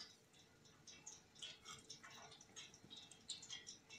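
A spoon scrapes and taps softly in a bowl of flour.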